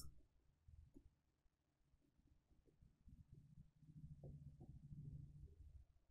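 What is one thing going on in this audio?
A marker squeaks on a glass board.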